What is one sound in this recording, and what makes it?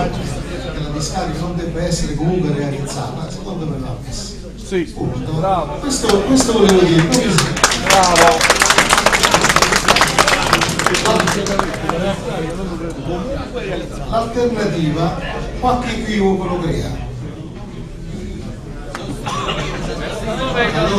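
Several men talk at once in a murmuring crowd indoors.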